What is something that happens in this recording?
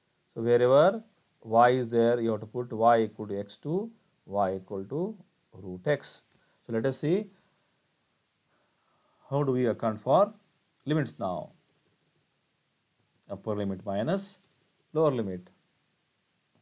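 A man speaks calmly over a microphone, explaining in short phrases with pauses.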